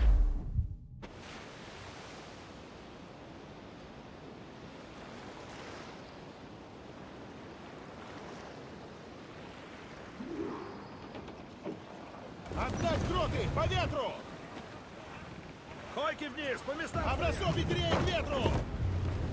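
Waves wash softly against a wooden sailing ship.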